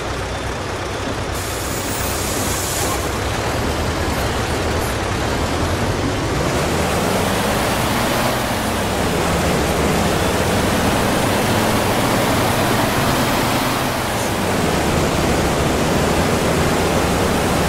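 A bus engine hums and rises in pitch as the bus speeds up.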